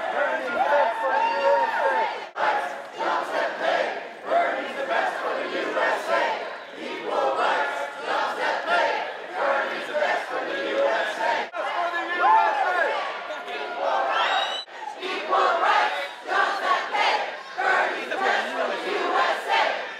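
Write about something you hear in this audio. A large crowd of men and women chants loudly in rhythm, echoing in a large hall.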